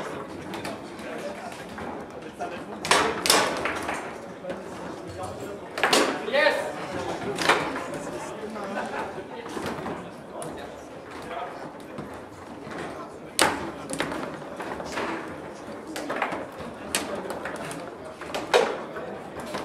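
Foosball rods rattle and clack as players jerk them.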